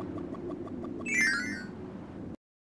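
A sparkling chime rings out.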